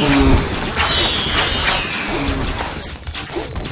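A short game sound effect plays as a wall section is placed.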